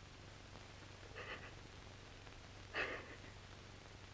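A young woman sobs quietly.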